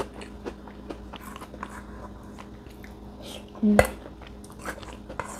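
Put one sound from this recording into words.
Crispy crackers crunch and rustle between fingers close by.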